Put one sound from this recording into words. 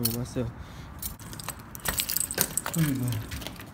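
Keys jingle on a key ring.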